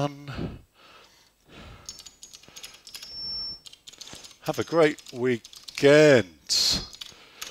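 A man speaks with animation into a headset microphone, close by.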